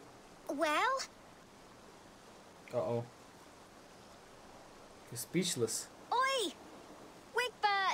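A young boy speaks with animation, calling out in short bursts.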